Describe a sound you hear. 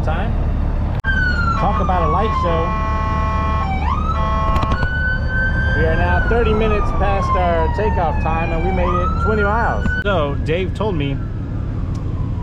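A police siren wails and rises and falls in pitch.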